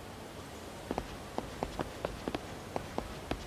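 Footsteps tap on stone at a walking pace.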